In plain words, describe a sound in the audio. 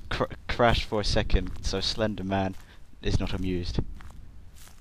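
A young man talks with animation into a headset microphone, close up.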